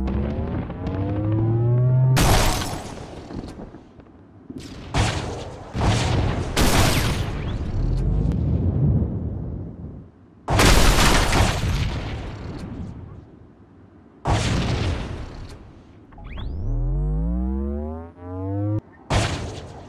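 A vehicle engine revs up with a rising whine.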